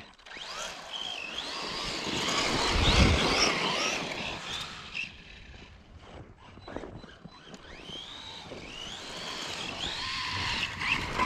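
A toy car's electric motor whines, revving up and down.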